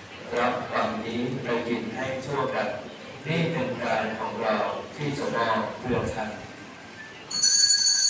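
A man speaks steadily through a loudspeaker in an echoing hall.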